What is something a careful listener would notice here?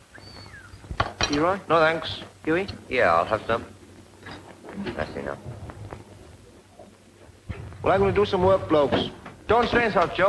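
Men talk with each other nearby.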